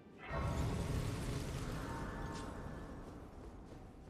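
A bright shimmering chime rings out and fades.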